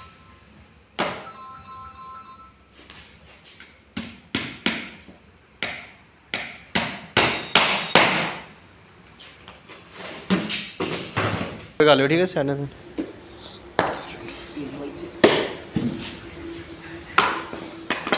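A hammer knocks sharply on wood, in quick bursts of blows.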